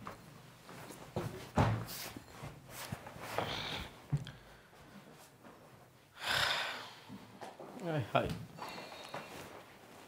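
A man sighs and groans as he sinks onto a sofa.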